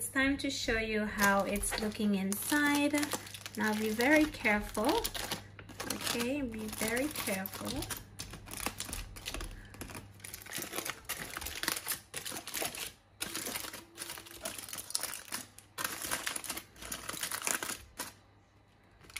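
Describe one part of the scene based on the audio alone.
Aluminium foil crinkles and rustles as hands unwrap it.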